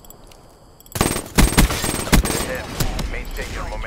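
A gun fires loud rapid shots.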